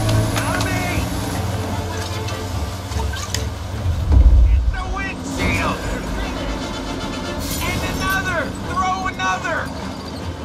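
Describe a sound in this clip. A truck engine idles with a low rumble.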